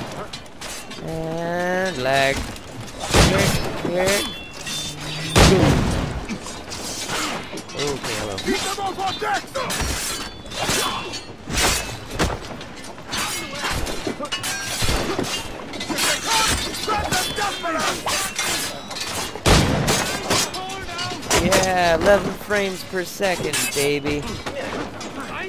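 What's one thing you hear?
Men shout and grunt as they fight.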